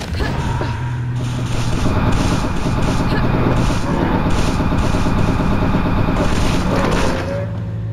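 A heavy weapon fires in a rapid, harsh stream of blasts.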